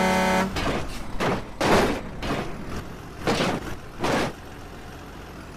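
A truck's wheels thump over a speed bump.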